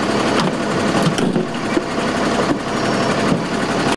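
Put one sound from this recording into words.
A vehicle door latch clicks and the door swings open.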